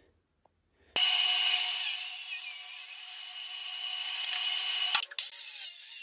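A circular saw whines as it cuts through wood.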